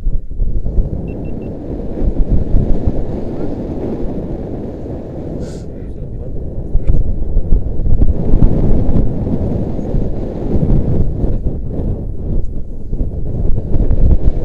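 Wind blusters loudly across the microphone outdoors.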